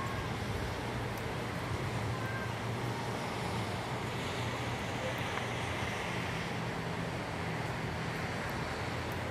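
Traffic rumbles steadily on a road below.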